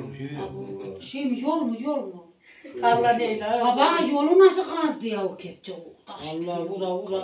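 A middle-aged woman talks with animation nearby.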